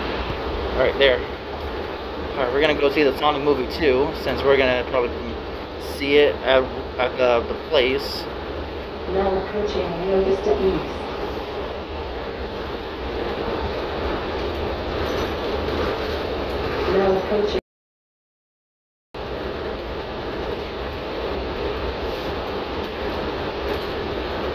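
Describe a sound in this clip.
A bus engine hums steadily while the bus rolls along.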